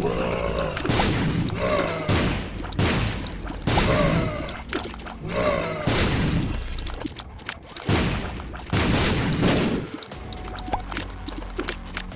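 Short wet popping sound effects burst again and again as shots hit.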